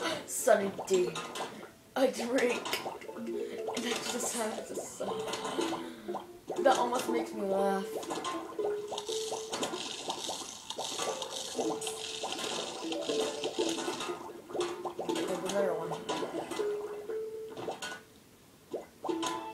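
Game sound effects pop and chime from a television.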